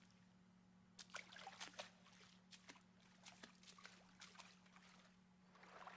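Footsteps tap and splash lightly on wet ground.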